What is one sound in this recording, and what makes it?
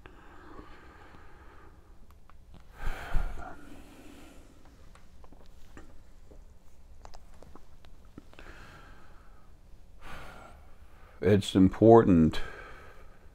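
An older man speaks calmly and slowly into a close microphone.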